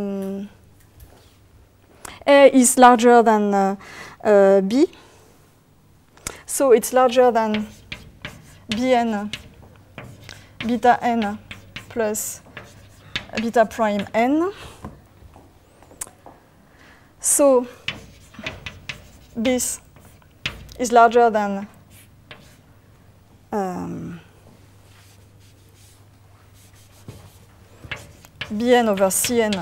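A woman speaks calmly in bursts, close to a microphone.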